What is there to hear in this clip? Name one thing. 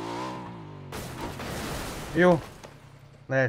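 A motorcycle crashes with a loud thud.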